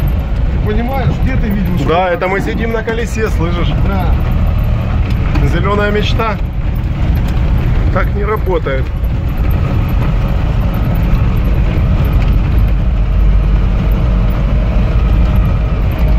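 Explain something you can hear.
Tyres roll and rumble over a rough dirt road.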